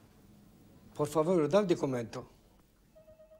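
An elderly man speaks briefly and firmly, close by.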